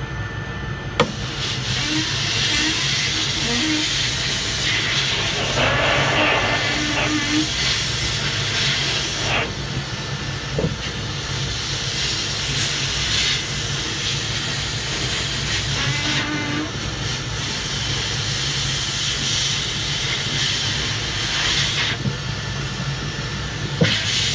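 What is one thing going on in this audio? Compressed air hisses loudly from a blow nozzle in bursts.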